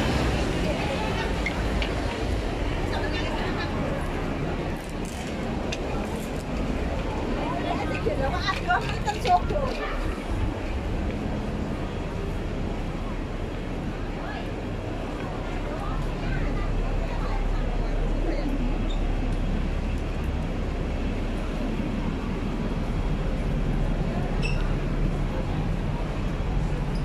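City traffic rumbles steadily nearby.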